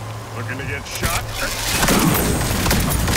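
Gunshots crack against glass.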